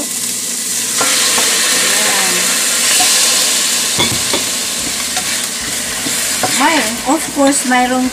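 Raw chicken sizzles loudly as it drops into a hot pan.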